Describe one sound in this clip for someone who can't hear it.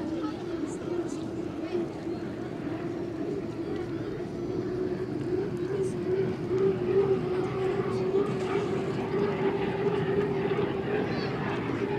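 Spray hisses and rushes behind a fast boat.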